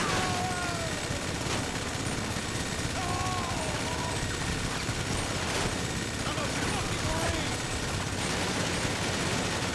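Gunshots fire in a burst close by.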